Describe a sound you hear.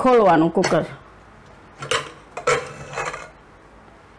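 A metal pressure cooker lid clinks as it is lifted off.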